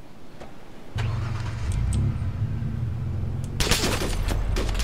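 A van engine starts up and runs with a low rumble.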